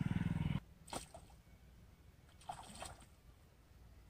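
A fish splashes and thrashes at the surface of the water.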